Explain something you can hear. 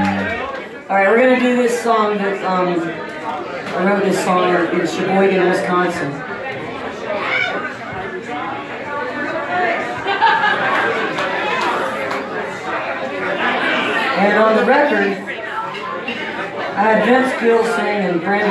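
A man sings into a microphone through loudspeakers.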